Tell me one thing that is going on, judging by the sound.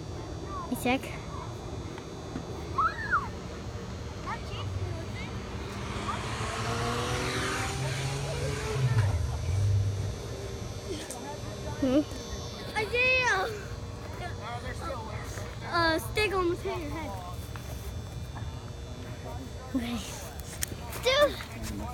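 A young child shouts and squeals excitedly nearby.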